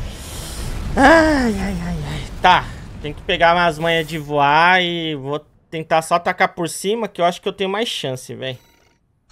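A man talks and exclaims with animation into a close microphone.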